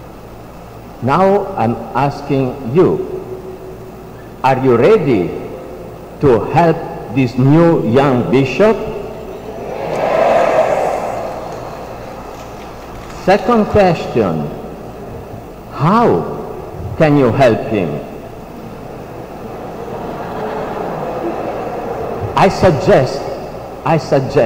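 A man speaks slowly and solemnly through a microphone in a large echoing hall.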